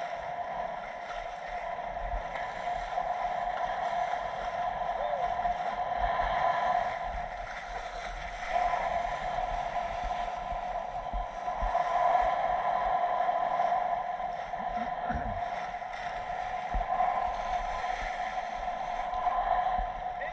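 Water sloshes and laps steadily against a boat outdoors.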